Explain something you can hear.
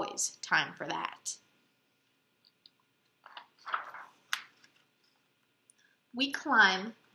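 A young woman reads aloud close by, with animation.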